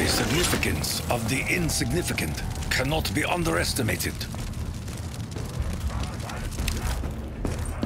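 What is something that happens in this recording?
Flames crackle and hiss nearby.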